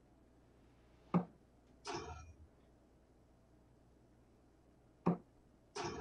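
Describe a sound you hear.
A dart strikes a dartboard with a sharp click.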